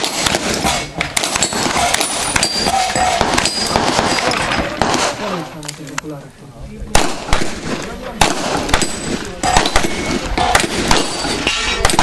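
Metal targets clang as bullets hit them.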